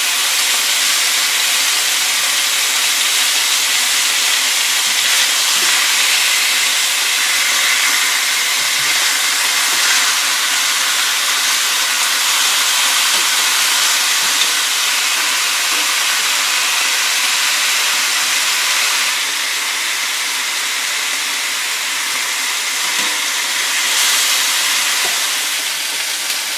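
Meat sizzles loudly in a hot pan.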